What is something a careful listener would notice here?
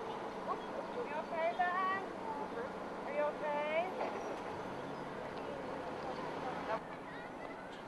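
A van drives slowly past outdoors.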